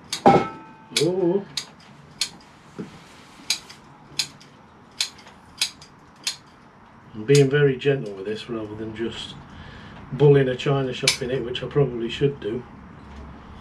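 A middle-aged man talks calmly nearby.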